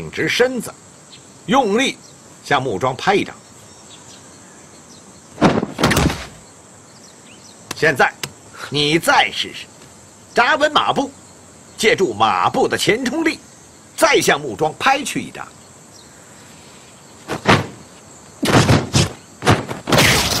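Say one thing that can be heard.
A young man speaks firmly, close by.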